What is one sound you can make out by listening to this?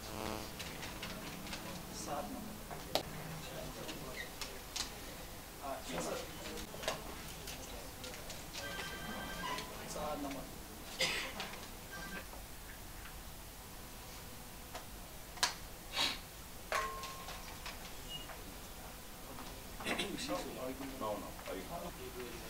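Paper rustles and crinkles as a slip is unfolded.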